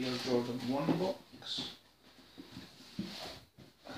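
A cardboard box lid rustles and scrapes as hands handle it.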